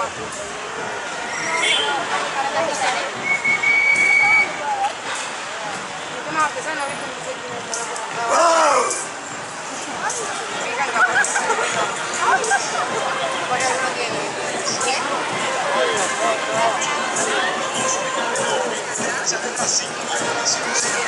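A crowd of people chatter and call out nearby outdoors.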